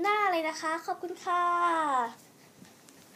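A young girl speaks close by in a high, sing-song voice, ending on a long falling note.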